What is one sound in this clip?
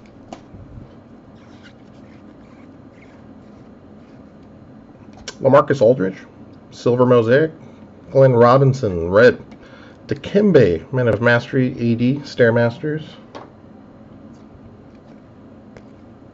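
Trading cards rustle softly as they are shuffled by hand.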